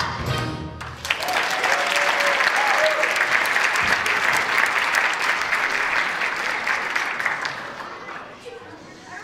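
Children cheer and shout loudly.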